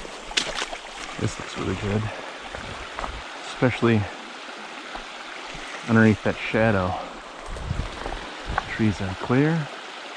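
A shallow stream trickles and babbles over stones.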